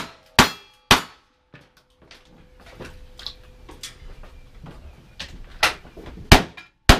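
Gunshots crack loudly, one after another, echoing under a roof.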